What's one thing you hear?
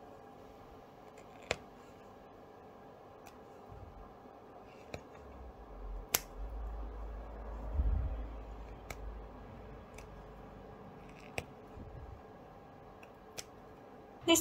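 Small scissors snip thread.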